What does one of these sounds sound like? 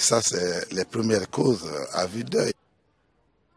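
A middle-aged man speaks with animation into microphones.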